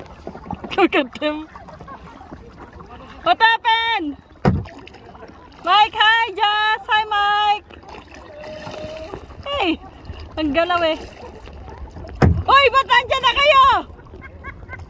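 Young women shout and call out excitedly across open water.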